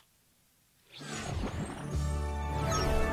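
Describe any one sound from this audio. A game plays a fanfare of victory music.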